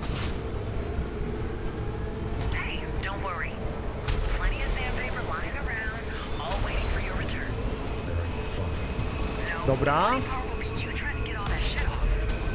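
A motorbike engine roars at speed.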